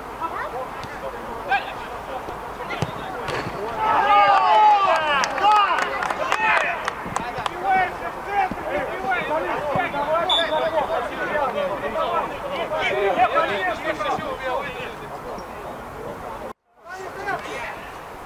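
A football thuds as players kick it on a pitch.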